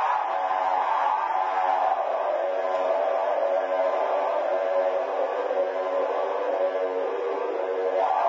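An electric guitar plays a steady, droning melody through an amplifier in a large hall.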